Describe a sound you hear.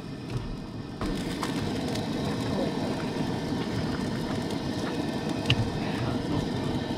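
A camp stove burner hisses and roars steadily.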